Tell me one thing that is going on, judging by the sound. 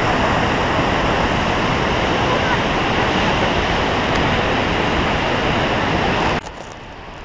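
A river rushes loudly over rocks.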